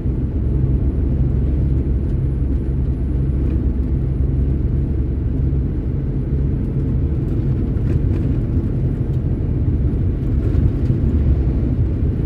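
A truck roars past close by in the other direction.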